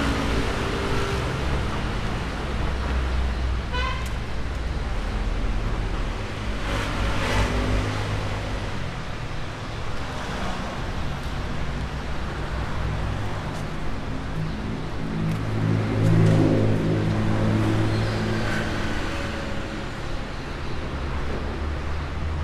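City traffic rumbles steadily nearby, outdoors.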